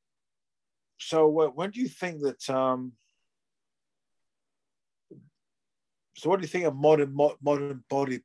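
A middle-aged man speaks calmly, heard through a phone microphone.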